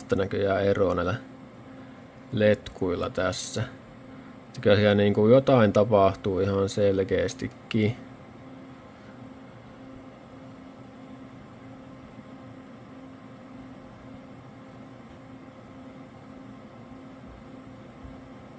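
Computer fans hum steadily.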